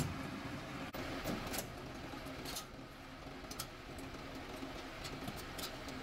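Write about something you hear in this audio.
Metal latches clank on a truck's tailgate.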